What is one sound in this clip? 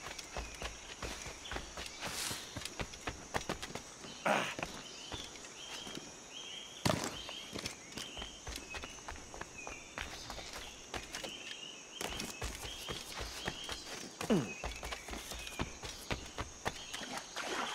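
Footsteps run quickly over damp ground and leaves.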